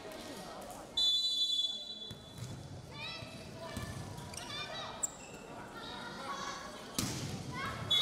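A volleyball is struck with sharp slaps in an echoing hall.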